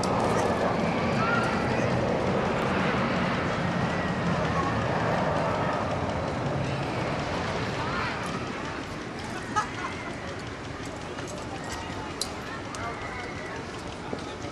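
A young woman screams with excitement.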